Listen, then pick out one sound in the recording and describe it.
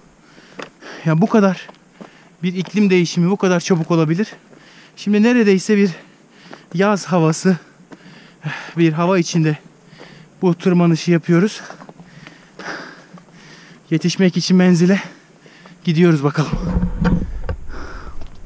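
A young man talks animatedly and close by.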